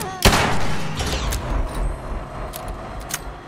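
A rifle's mechanism clicks and clacks during reloading.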